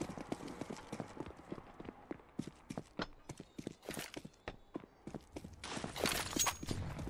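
Quick footsteps tap on a hard floor.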